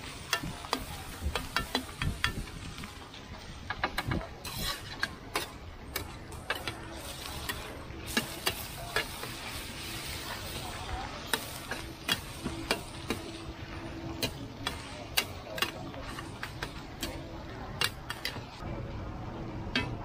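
Metal spatulas scrape and clatter against a hot pan.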